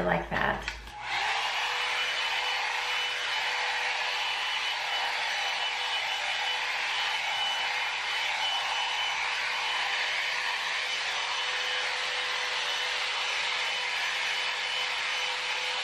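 A hair dryer brush blows with a steady whir.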